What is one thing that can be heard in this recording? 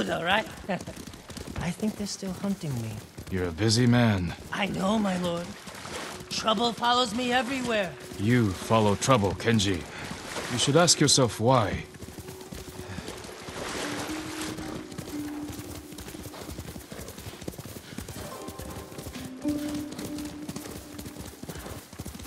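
Horses gallop, hooves pounding on soft ground.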